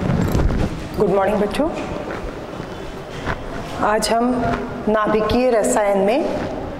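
A woman speaks clearly and expressively close by.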